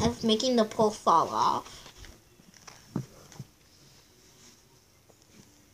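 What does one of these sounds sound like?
A page of a book flips over with a papery rustle.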